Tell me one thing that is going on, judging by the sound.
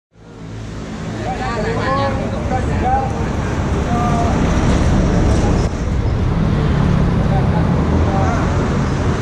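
A crowd of men chatter outdoors nearby.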